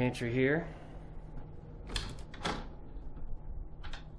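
A door swings open with a soft click.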